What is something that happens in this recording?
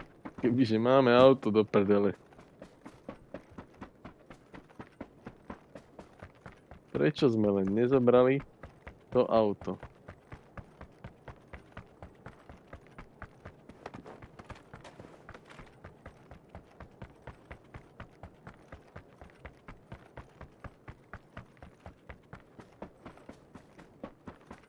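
Footsteps crunch quickly and steadily over dry ground.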